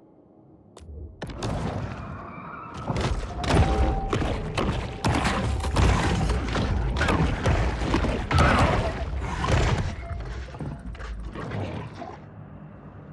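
Water churns and splashes as a shark thrashes.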